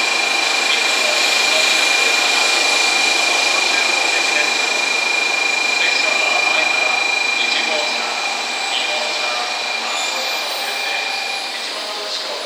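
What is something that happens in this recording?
A high-speed train glides past with a steady whoosh that slowly fades.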